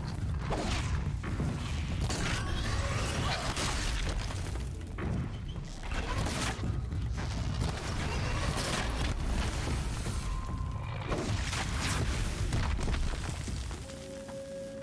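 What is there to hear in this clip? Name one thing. Loud combat sounds crash and clatter as a machine creature is fought.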